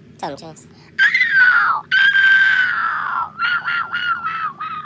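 A dog whines in high, drawn-out cries.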